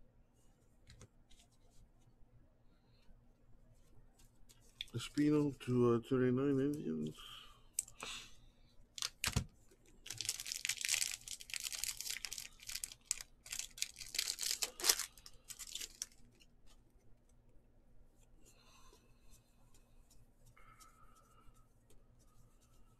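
Trading cards rustle and slide against each other as they are flipped through.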